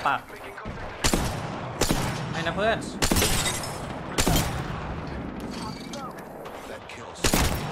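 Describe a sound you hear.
A sniper rifle fires loud single shots that ring out.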